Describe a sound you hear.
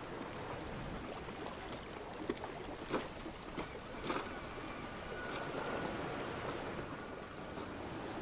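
Water laps gently.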